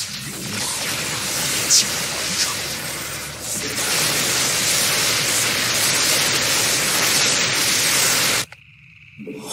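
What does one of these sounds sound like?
Weapons crackle and buzz in a loud, busy battle.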